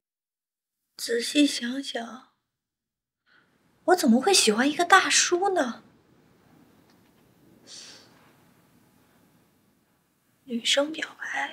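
A young woman speaks sulkily, close by.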